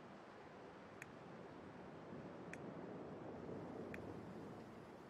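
Soft menu clicks sound a few times.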